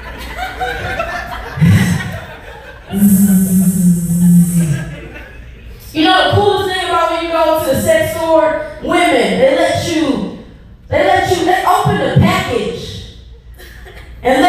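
A young woman sings loudly and with animation.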